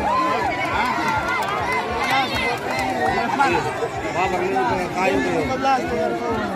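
A large outdoor crowd of men and women talks and shouts all at once.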